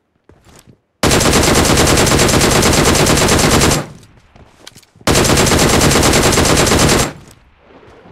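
A sniper rifle fires loudly.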